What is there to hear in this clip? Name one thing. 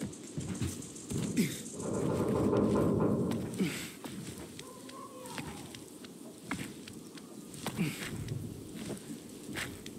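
Gloved hands grab and knock against metal beams.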